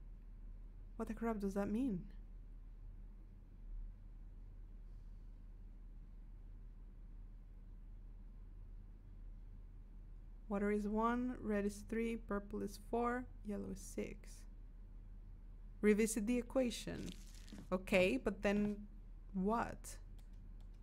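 A young woman talks with animation, close to a microphone.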